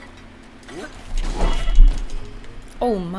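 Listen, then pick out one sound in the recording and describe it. Game blows and thuds sound during a fight.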